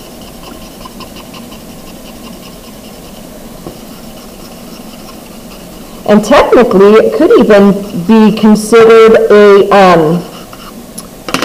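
A soft brush lightly rubs across paper.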